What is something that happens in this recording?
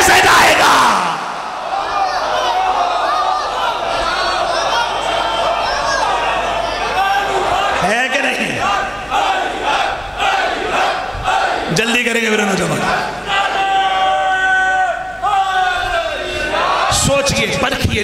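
A large crowd of men chants together in rhythm.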